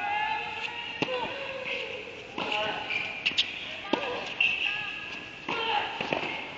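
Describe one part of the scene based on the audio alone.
A tennis ball is struck with a racket, with a sharp pop echoing in a large indoor hall.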